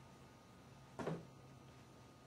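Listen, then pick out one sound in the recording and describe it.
A window sash slams shut with a sharp knock.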